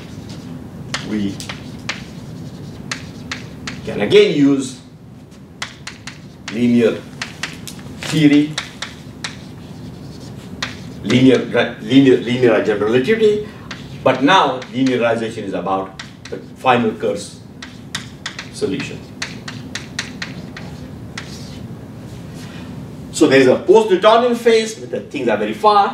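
An elderly man speaks slowly and calmly, as if lecturing.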